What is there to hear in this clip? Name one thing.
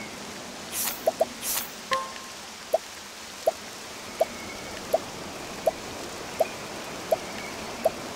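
Short soft menu blips tick at an even pace.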